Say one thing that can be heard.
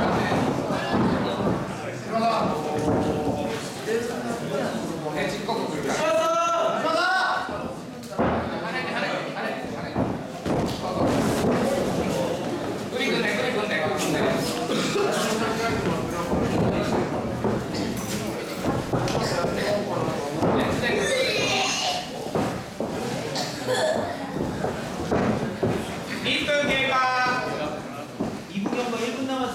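Spectators shout and call out encouragement nearby.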